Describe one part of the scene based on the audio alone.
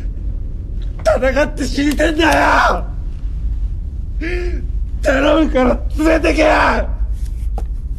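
A young man shouts desperately and sobs close by.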